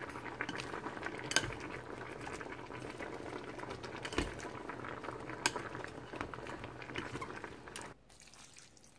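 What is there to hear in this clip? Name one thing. A wooden spoon and chopsticks scrape and clack against a metal pot.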